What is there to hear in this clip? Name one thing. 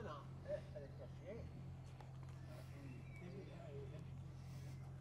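Men talk calmly at a short distance outdoors.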